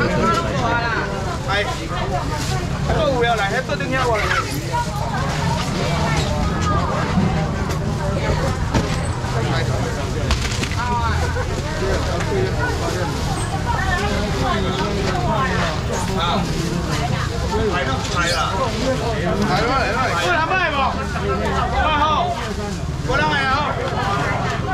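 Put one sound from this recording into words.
Young men talk loudly and with animation close by.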